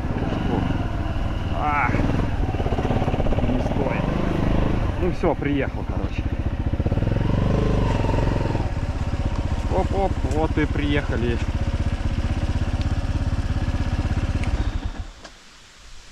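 An off-road vehicle engine rumbles steadily close by, then stops.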